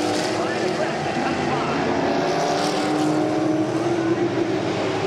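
Race car engines roar loudly as cars speed past.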